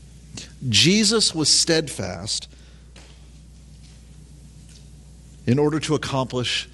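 A middle-aged man speaks with emphasis into a microphone, with a slight room echo.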